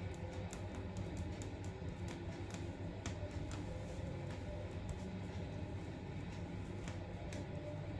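A needle pokes and pulls thread through stiff fabric with soft ticks and rustles.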